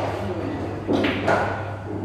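A cue stick strikes a ball with a sharp click.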